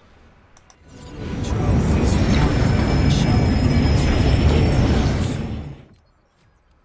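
Wind rushes loudly past a glider in flight.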